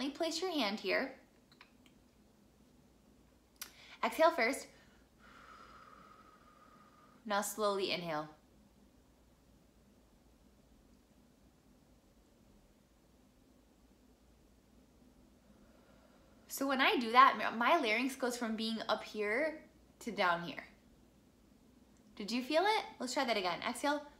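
A young woman speaks calmly and closely, in short phrases with pauses.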